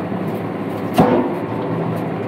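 Logs knock together with a hollow clunk.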